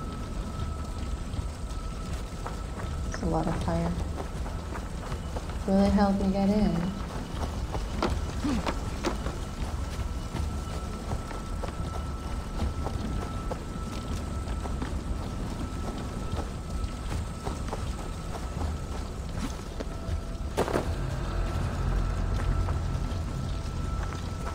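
Footsteps crunch on the ground.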